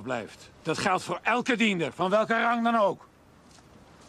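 A middle-aged man speaks loudly and angrily, close by.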